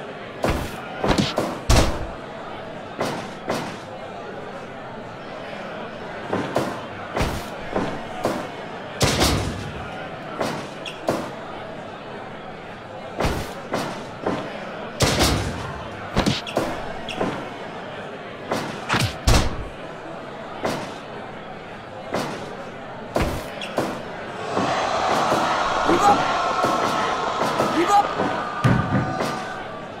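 Blows land with sharp slaps and thumps.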